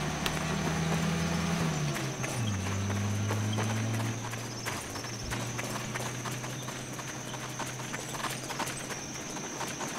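Soldiers' boots patter on pavement as they run.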